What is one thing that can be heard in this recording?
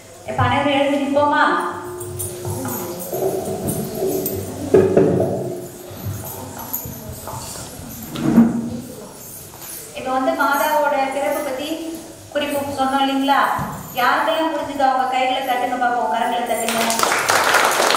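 A middle-aged woman speaks calmly through a microphone, amplified in an echoing room.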